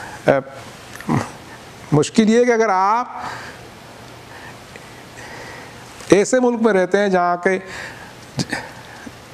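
A middle-aged man speaks with animation into a microphone, at times chanting in a drawn-out, melodic voice.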